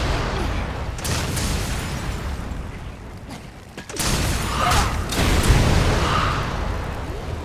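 A gun fires loudly.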